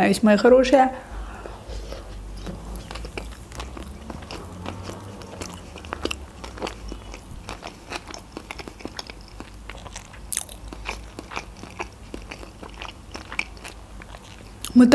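A young woman chews food with soft, moist crunching sounds close to a microphone.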